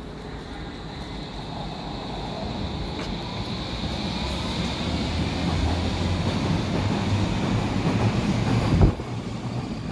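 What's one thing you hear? An electric train pulls away, its rumble and whine growing louder.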